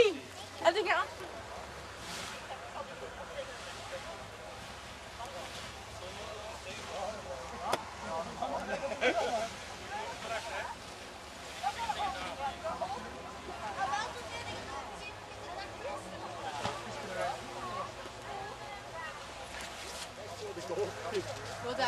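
Men and women talk nearby outdoors.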